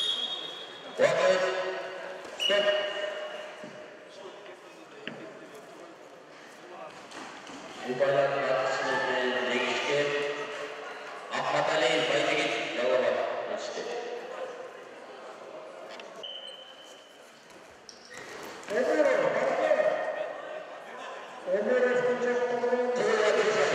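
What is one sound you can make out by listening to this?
A man shouts loudly in a large echoing hall.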